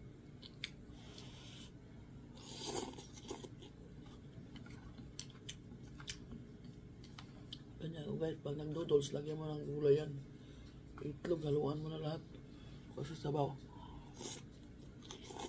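A woman slurps noodles noisily.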